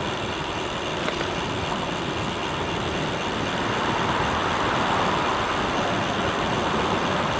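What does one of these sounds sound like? Bicycle tyres roll on pavement.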